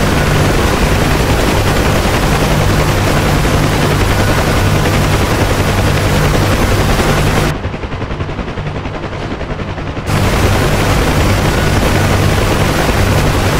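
A helicopter's rotor beats steadily with a loud engine whine.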